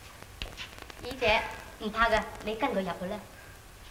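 A woman speaks anxiously nearby.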